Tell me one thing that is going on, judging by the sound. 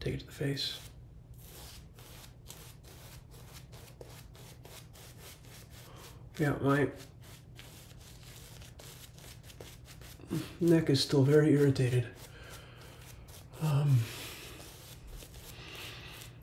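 A shaving brush swishes and scrubs against stubbly skin close by.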